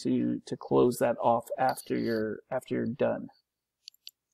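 A middle-aged man speaks calmly through a microphone on an online call.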